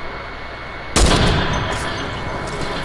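A rifle fires a single loud shot, followed by a short echo.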